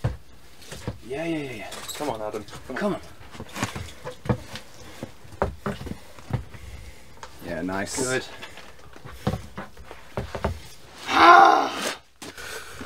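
A young man grunts and groans with effort close by.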